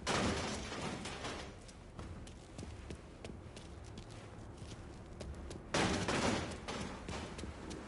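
Footsteps walk and then run on a hard floor.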